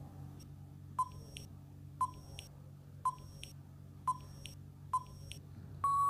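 A countdown timer ticks once a second.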